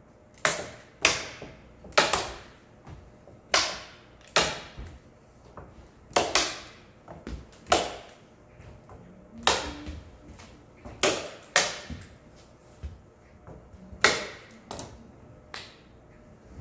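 A staple gun snaps sharply again and again.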